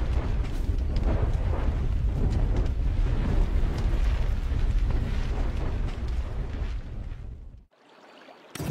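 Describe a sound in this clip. A deep explosion rumbles and roars.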